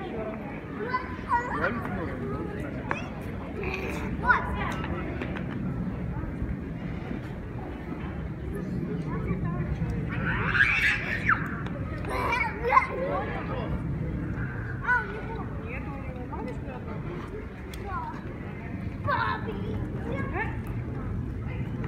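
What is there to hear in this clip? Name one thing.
Young children shout and chatter excitedly nearby outdoors.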